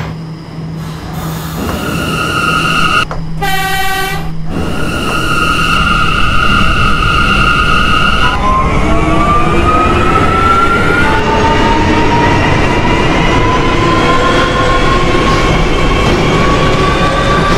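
A train rumbles along the rails, growing louder.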